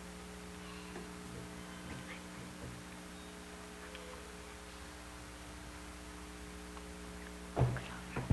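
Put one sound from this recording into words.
Women and children chatter quietly in a large hall.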